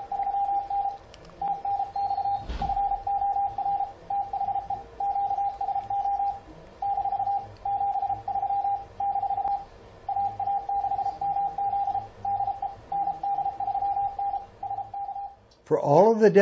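A steady Morse code tone beeps in quick bursts through a radio.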